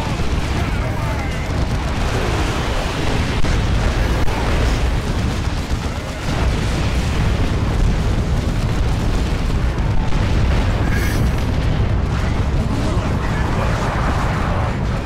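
Gunfire and explosions crackle and boom throughout a battle.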